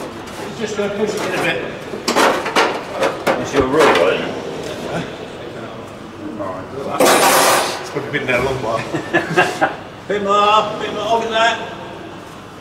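A middle-aged man talks nearby.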